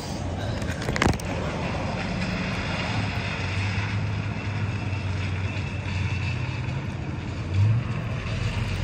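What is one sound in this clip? Clothing rustles against the microphone.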